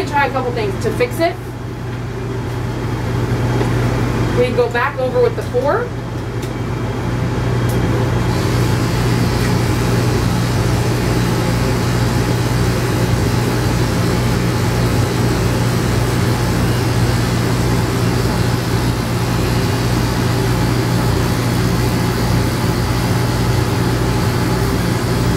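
Electric clippers buzz steadily close by.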